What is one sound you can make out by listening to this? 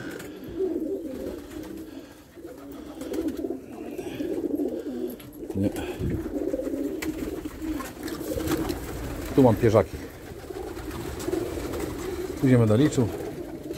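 Many pigeons coo steadily all around.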